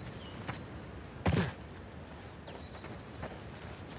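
Footsteps pad quickly over soft ground.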